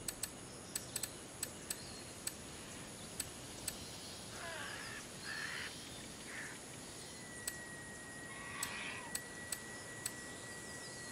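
Short, sharp menu clicks tick now and then.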